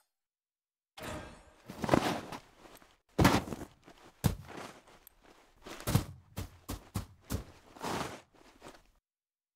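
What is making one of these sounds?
Snow crunches and thumps as a snowman is packed together.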